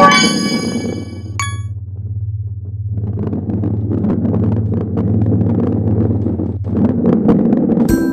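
A ball rolls along a track with a low, steady rumble.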